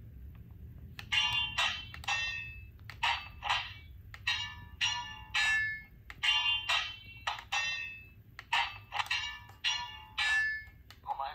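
A toy sword plays bursts of electronic sound effects through a small speaker.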